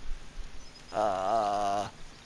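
A man hums a long, wavering tone.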